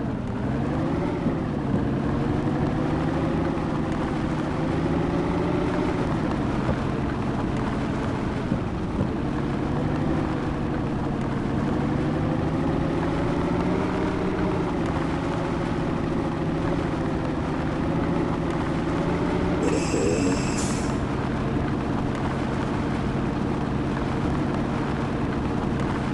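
A truck's diesel engine rumbles steadily, rising and falling in pitch as it revs.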